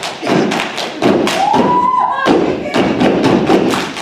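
A group of young women clap their hands in rhythm.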